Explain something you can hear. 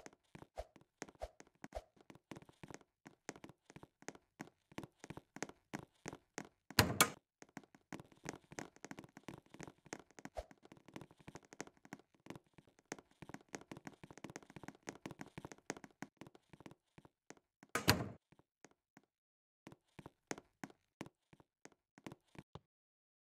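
Footsteps tap quickly across a hard floor.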